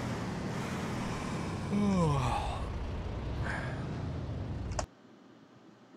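A truck engine rumbles at idle.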